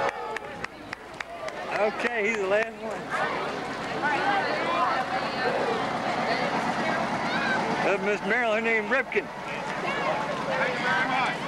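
A crowd of young people chatter outdoors nearby.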